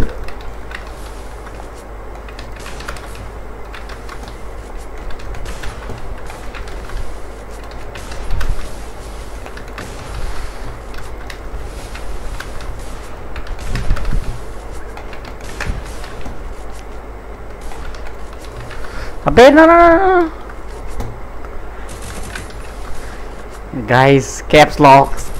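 Barriers slam up with a whooshing crack, again and again.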